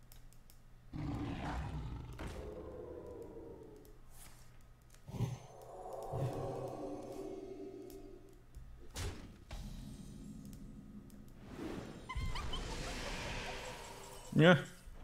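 Magical chimes and whooshes from a card game play.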